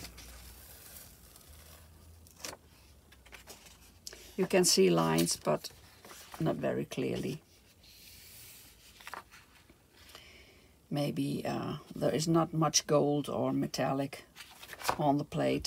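A sheet of paper rustles as it is lifted and peeled away.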